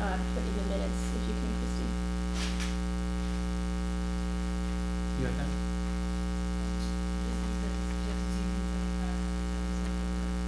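A man speaks quietly at a distance, heard through a room microphone.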